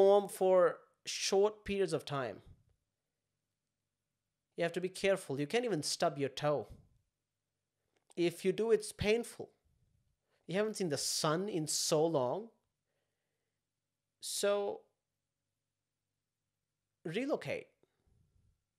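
A young man talks calmly into a close microphone, with pauses.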